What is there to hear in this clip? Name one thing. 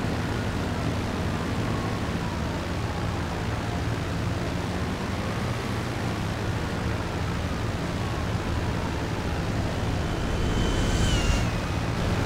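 Propeller engines drone steadily as a plane flies low.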